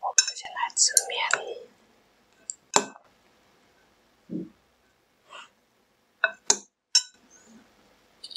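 Chopsticks clink against a bowl.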